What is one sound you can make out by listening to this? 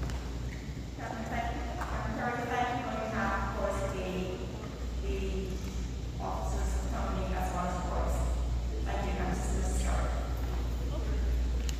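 A man speaks calmly into a microphone over a loudspeaker in an echoing hall.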